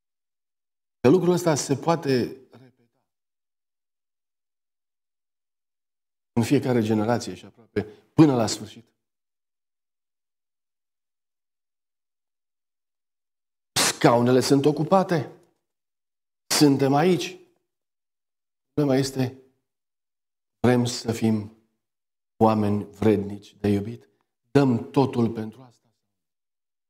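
A middle-aged man speaks calmly through a microphone, in short phrases with pauses.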